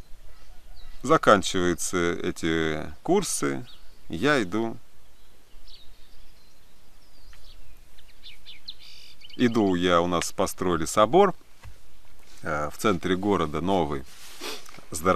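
A young man speaks calmly and close by, in bursts with pauses.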